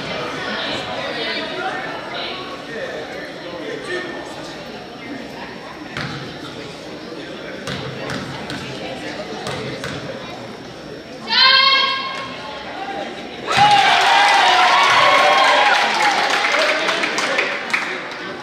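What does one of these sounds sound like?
Spectators chatter in an echoing gym.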